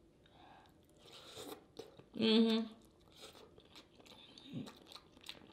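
A woman chews and smacks her lips loudly.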